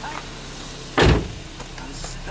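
A hand bumps against a car door with a dull thud.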